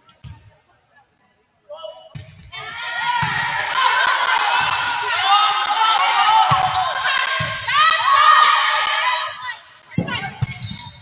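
A volleyball is struck with dull thumps, echoing in a large hall.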